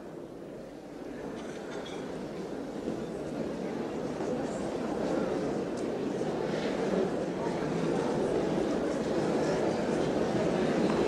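A crowd of men and women murmurs and chatters in a large echoing hall.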